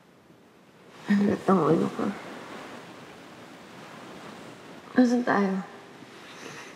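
A young woman speaks quietly and tensely up close.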